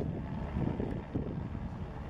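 A motorboat engine roars as a motorboat speeds by.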